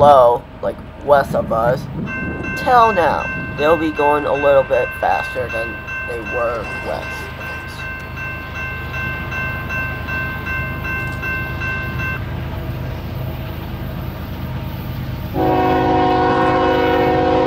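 A diesel train rumbles low as it approaches from far off.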